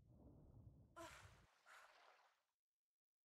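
Water splashes as a swimmer breaks the surface.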